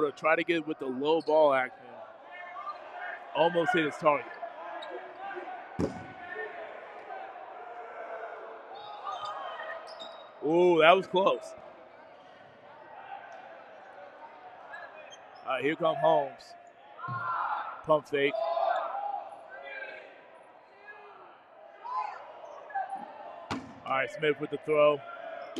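Young people shout loudly in a large echoing hall.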